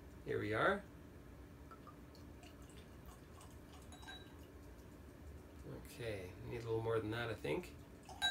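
Liquid pours gently into a glass.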